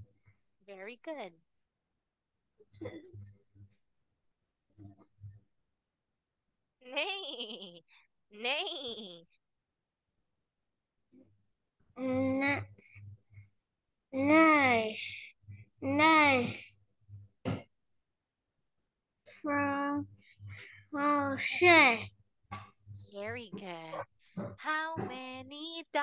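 A young girl speaks and sings over an online call.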